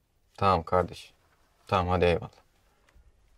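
A young man speaks calmly into a phone, close by.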